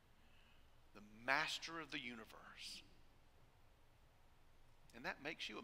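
A middle-aged man speaks calmly into a microphone in a large hall, with pauses between phrases.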